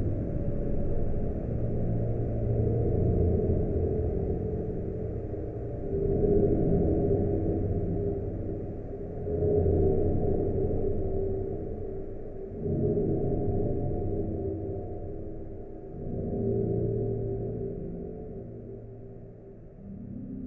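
A muffled old dance band plays a slow, hazy tune through a worn, crackly record.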